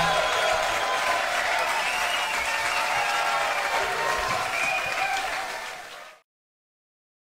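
A band plays loudly in a large echoing hall, then fades away.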